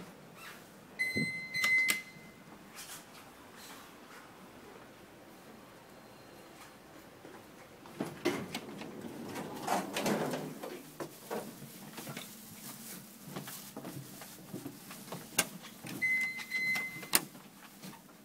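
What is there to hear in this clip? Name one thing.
An electronic chime beeps briefly.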